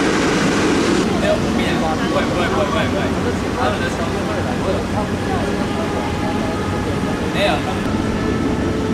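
A distant jet airliner hums as it approaches.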